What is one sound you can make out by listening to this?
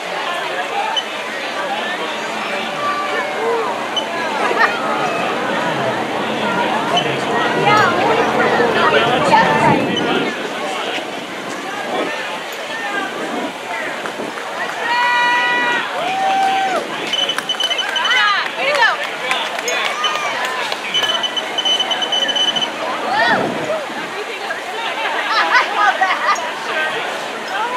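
A crowd of spectators talks and cheers outdoors.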